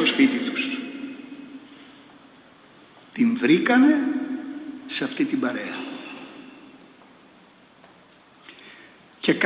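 An elderly man speaks slowly into a microphone, with pauses, in a room with a long echo.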